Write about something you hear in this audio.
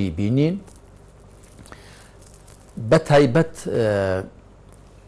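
A middle-aged man speaks calmly into a close microphone, pausing between phrases.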